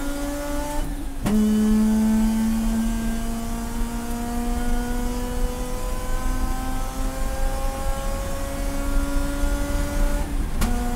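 A race car engine roars loudly from inside the cabin, rising in pitch as it speeds up and dropping at each gear change.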